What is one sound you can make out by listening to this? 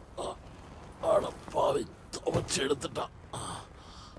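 A man grunts and groans with effort, close by.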